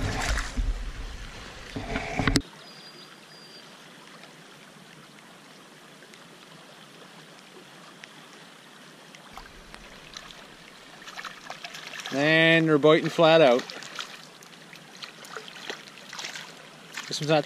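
A river ripples and flows past.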